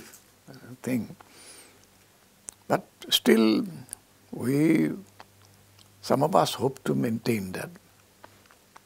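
An elderly man speaks slowly and calmly, close to a microphone, with pauses.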